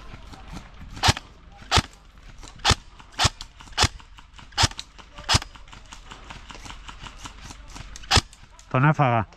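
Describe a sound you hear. Airsoft shots pop sharply, one at a time, at uneven intervals.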